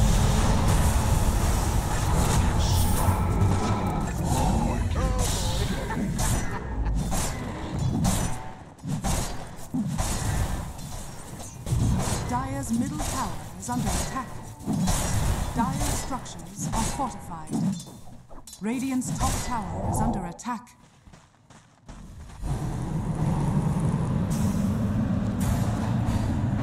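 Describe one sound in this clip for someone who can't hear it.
Spells blast and weapons clash in a fierce fight.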